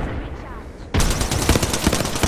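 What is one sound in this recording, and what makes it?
An electric beam crackles and hums loudly.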